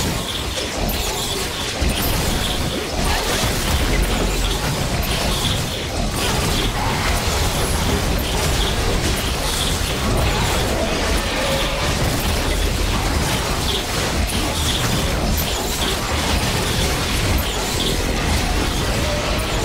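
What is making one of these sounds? Magical blasts and strikes crackle and boom in a fast battle.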